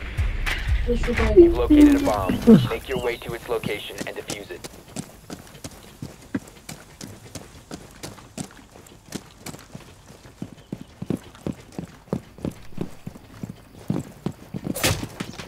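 Footsteps tap steadily on a hard floor indoors.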